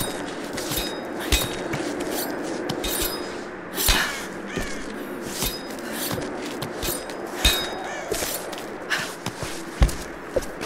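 Hands scrape and grip rough rock while climbing.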